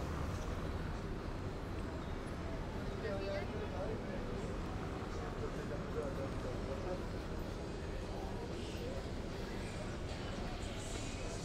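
City traffic hums steadily in the distance.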